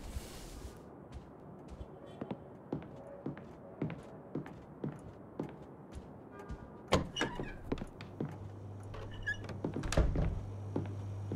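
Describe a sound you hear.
Footsteps tap steadily on a wooden floor.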